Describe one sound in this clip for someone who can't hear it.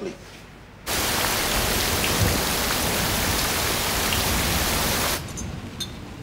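Heavy rain pours down loudly on a roof.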